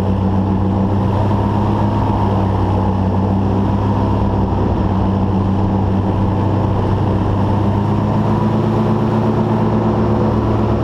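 A small motor hums steadily at a high, even pitch.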